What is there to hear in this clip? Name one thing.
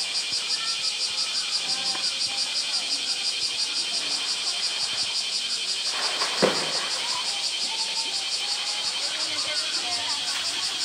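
Water splashes and sloshes as a large animal swims.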